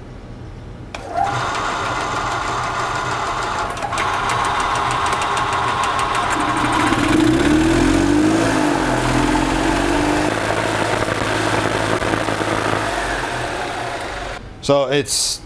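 A small printer whirs and buzzes steadily.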